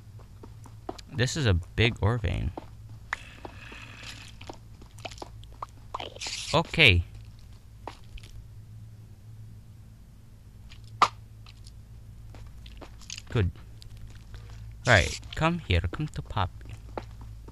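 A pickaxe chips and cracks at stone blocks in short bursts.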